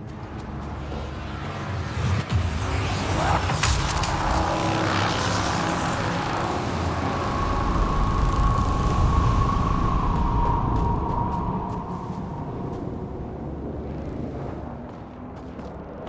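A deep swirling roar rumbles and slowly fades.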